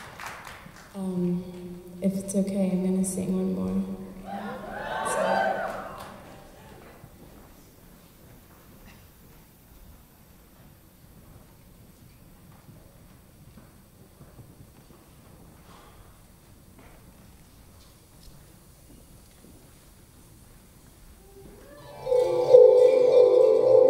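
A woman sings into a microphone, heard through loudspeakers in a large hall.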